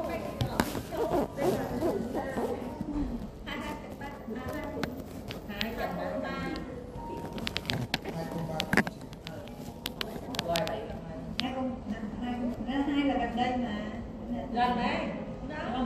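A crowd of men and women chatter in the background.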